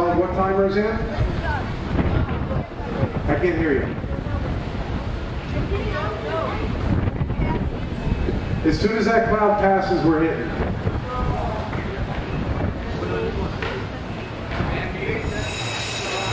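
A young man sings into a microphone over loudspeakers outdoors.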